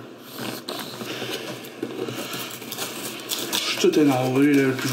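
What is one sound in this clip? Cardboard rustles as a box is handled.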